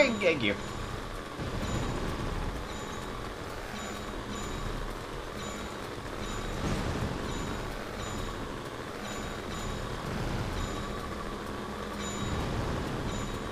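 Hover vehicle engines hum steadily.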